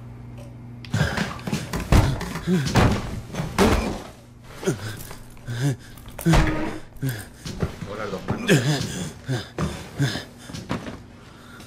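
Something rustles and clatters as it is handled close by.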